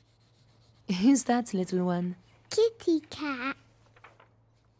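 A young girl speaks brightly and excitedly, close by.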